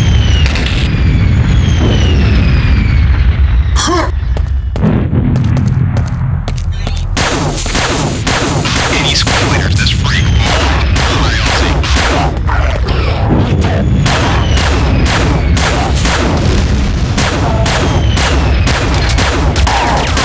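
A video game machine gun fires in rapid bursts.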